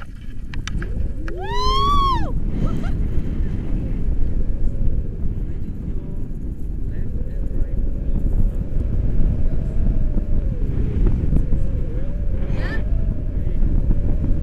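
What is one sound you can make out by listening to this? Wind roars loudly past a microphone outdoors.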